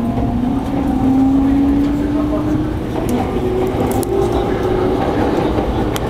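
A train's motor whines, rising in pitch as it speeds up.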